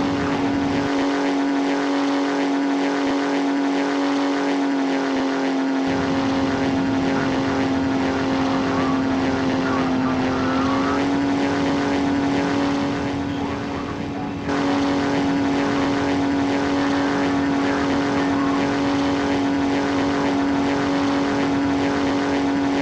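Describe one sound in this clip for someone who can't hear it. Propeller engines drone steadily at full power.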